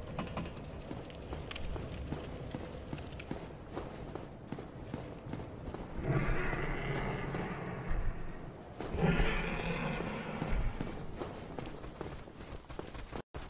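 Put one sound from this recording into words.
Armoured footsteps thud and clink on stone.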